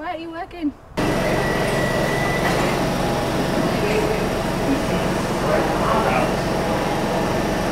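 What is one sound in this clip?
A train hums loudly at a busy platform.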